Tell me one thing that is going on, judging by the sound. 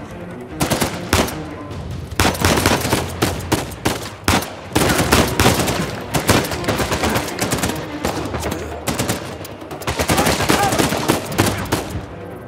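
Pistol shots ring out in rapid bursts.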